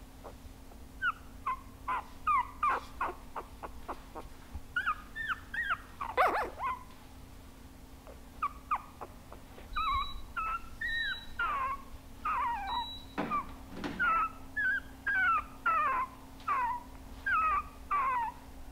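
Newborn puppies squeak and whimper in short, high cries, close by.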